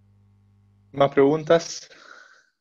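A man speaks briefly into a microphone over an online call.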